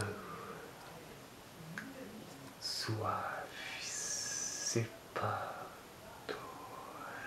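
A young man speaks calmly, close up.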